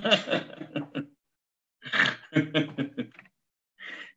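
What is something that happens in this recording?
A middle-aged man laughs over an online call.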